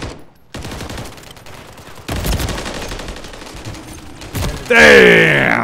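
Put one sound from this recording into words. Gunfire rattles in rapid bursts.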